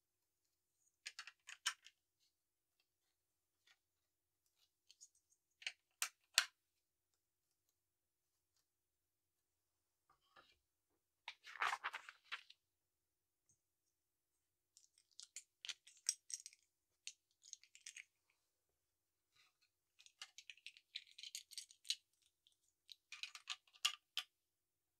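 Plastic toy bricks click and clatter as they are handled and pressed together.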